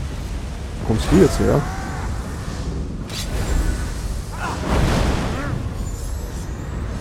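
A magic blast crackles and whooshes.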